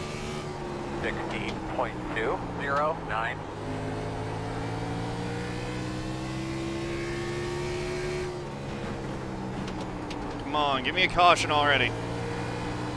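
Tyres squeal in short bursts as a racing car takes a turn.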